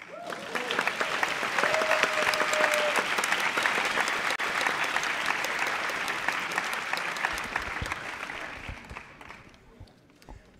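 An audience applauds loudly in a large room, then the clapping fades.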